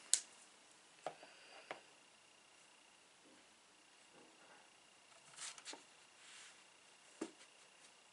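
A small plastic device clicks softly under a woman's fingers.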